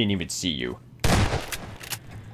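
A shotgun fires once with a loud blast.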